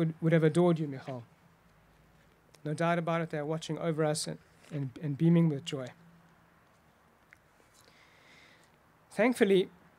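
A young man reads out calmly through a microphone, outdoors.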